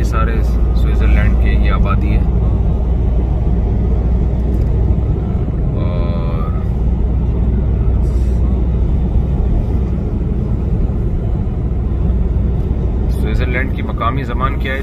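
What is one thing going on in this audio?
Tyres and engine rumble steadily from inside a moving car.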